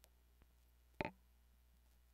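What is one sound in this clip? A tonearm knocks lightly onto its rest.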